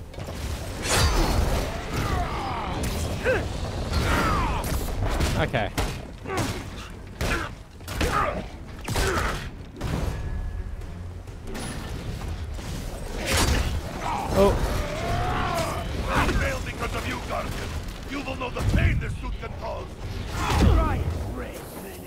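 Heavy punches and crashes thud and bang in a fight.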